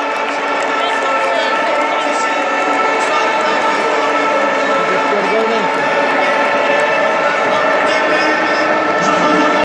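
A huge crowd sings together in a large echoing arena.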